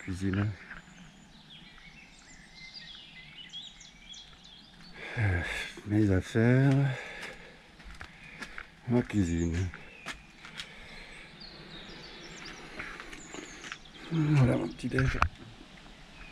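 A middle-aged man speaks calmly, close by.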